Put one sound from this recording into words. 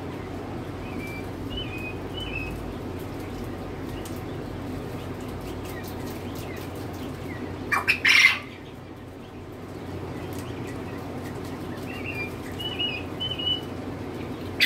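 Chicks chirp softly nearby.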